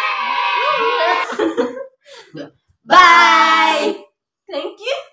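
Young women sing together close by.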